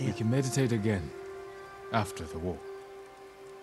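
A man speaks calmly and slowly.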